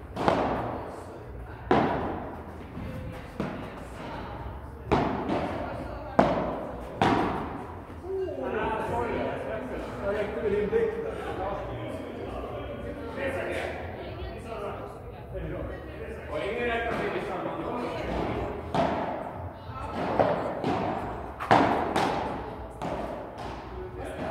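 Paddle rackets smack a ball back and forth, echoing in a large hall.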